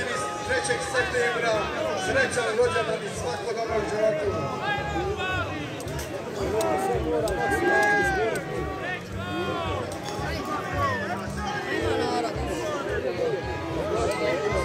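Two bulls clash heads and shove each other.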